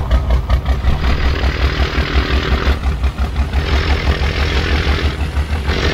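Tyres crunch over gravel in bursts.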